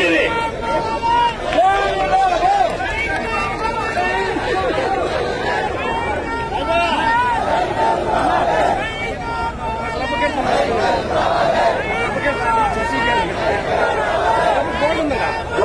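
A large crowd of men chants and shouts together outdoors.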